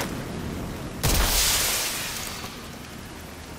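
A flare launches with a loud rushing hiss.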